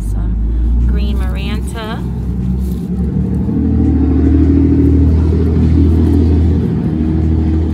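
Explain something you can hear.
Leaves rustle as a hand handles a potted plant.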